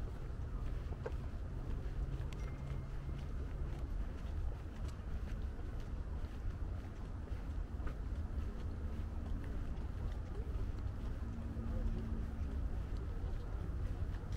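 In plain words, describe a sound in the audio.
Footsteps of a man walking on pavement.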